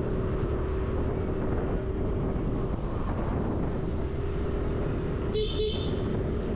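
Wind rumbles against the rider.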